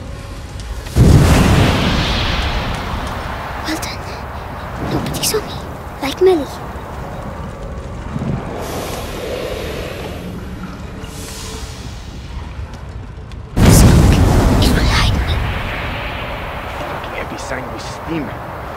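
A burst of steam hisses loudly and slowly fades.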